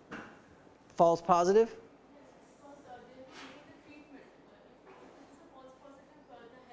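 A middle-aged man lectures calmly into a microphone.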